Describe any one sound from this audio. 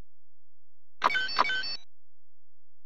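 Short electronic menu beeps chirp in quick succession.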